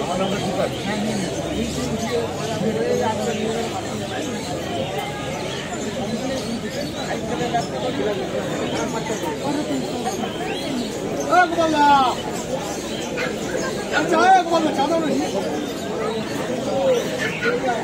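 Several men and women talk nearby in a busy, noisy crowd.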